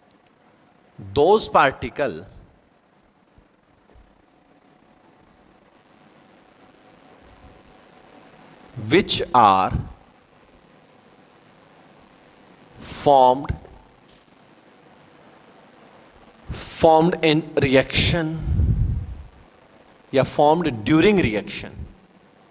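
A man speaks in short phrases, close to a microphone.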